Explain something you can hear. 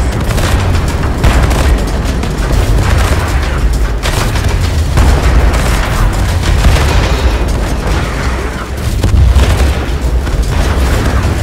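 Gunfire rattles rapidly without a break.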